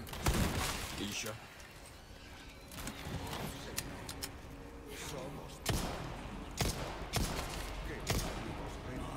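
Gunshots crack loudly in a game.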